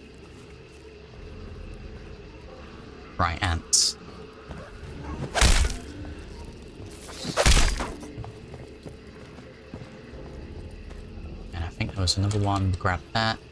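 Slow footsteps thud on wooden floorboards.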